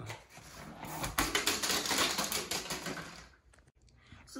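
Plastic bottles clatter as a ball knocks them over.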